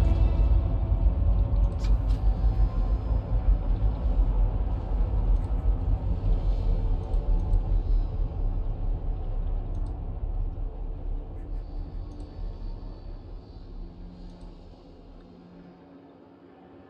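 A heavy engine rumbles low and slowly fades away.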